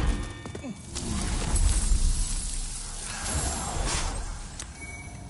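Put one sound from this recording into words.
A creature's body collapses and dissolves with a rushing hiss.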